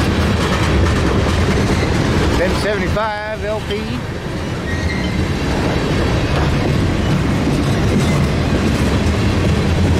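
A freight train rumbles past up close, wheels clattering on the rails.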